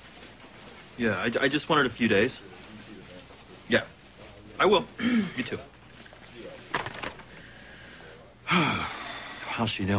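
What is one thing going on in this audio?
A young man speaks on a phone nearby.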